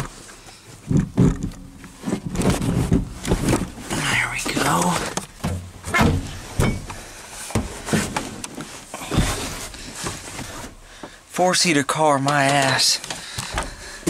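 A young man talks close up, in a low, excited voice.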